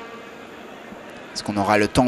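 A large stadium crowd murmurs and roars in the distance.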